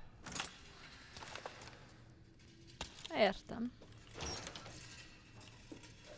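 A metal gate creaks open.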